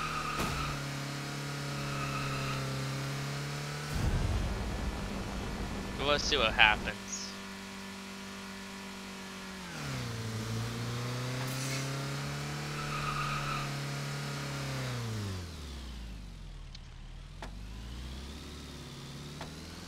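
A car engine drones steadily, rising and falling in pitch with speed.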